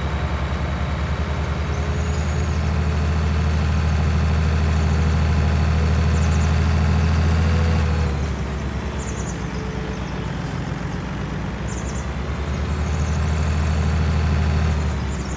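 A tractor engine hums steadily, rising and falling as it speeds up and slows down.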